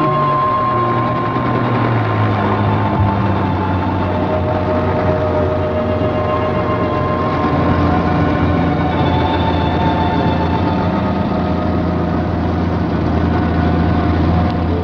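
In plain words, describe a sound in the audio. A helicopter engine drones and its rotor thumps as it comes in to land.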